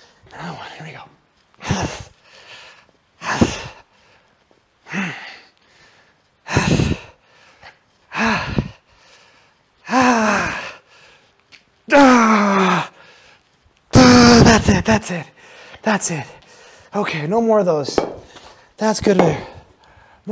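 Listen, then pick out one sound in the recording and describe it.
A man speaks with effort in short bursts, close to a microphone.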